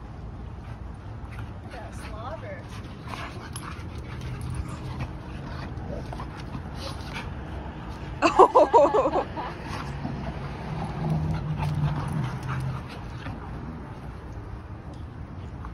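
Dog paws scuffle on hard ground.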